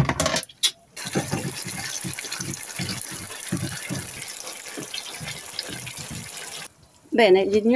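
Food sizzles loudly in a frying pan.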